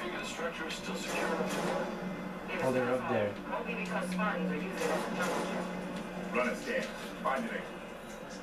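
Gunfire and explosions from a video game play through a television speaker.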